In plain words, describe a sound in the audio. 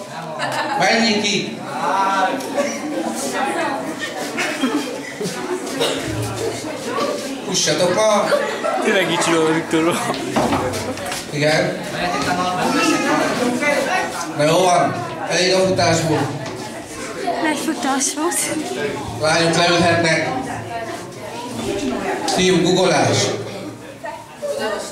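A crowd of young people chatters and calls out in an echoing hall.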